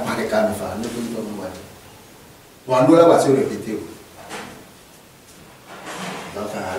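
A man speaks calmly in conversation, heard up close through a microphone.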